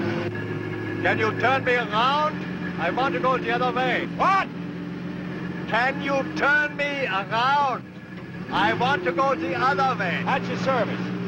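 An older man shouts back gruffly.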